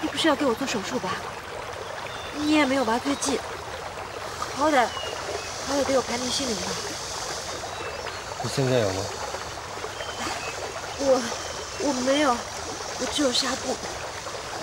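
A young woman speaks tearfully and pleadingly up close.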